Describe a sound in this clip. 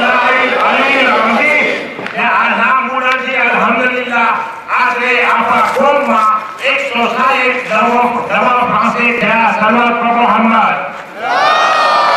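A man speaks loudly into a microphone, heard through loudspeakers in a large echoing space.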